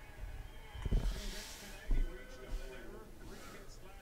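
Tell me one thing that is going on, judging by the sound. Cards rustle and slide between hands.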